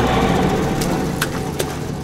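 Footsteps walk slowly on a wet street.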